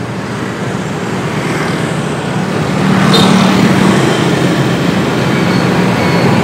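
Motorbike engines hum steadily along a busy street.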